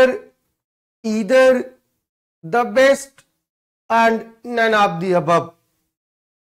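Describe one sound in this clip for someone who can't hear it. A man speaks clearly into a clip-on microphone, in short phrases.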